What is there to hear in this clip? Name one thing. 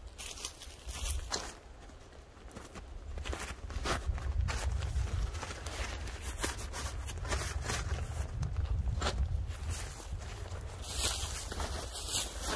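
Wind blows and buffets outdoors.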